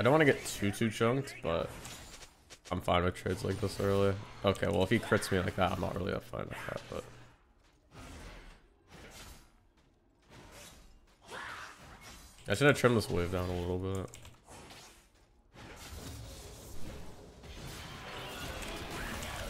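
Combat sound effects of a video game clash and whoosh.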